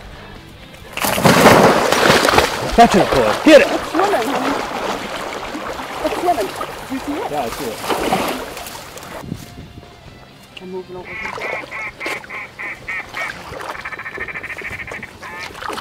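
A dog splashes and paddles through water close by.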